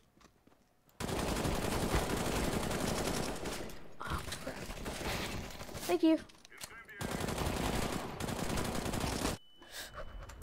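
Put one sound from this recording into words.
Rapid gunfire rattles loudly in bursts.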